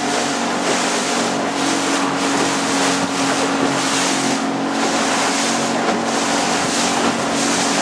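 Water rushes and splashes against the hull of a small boat on choppy sea.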